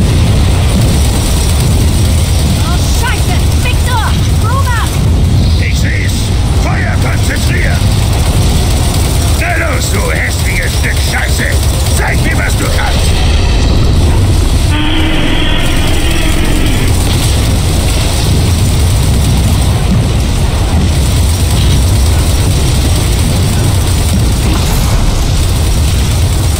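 A heavy twin machine gun fires in rapid, rumbling bursts.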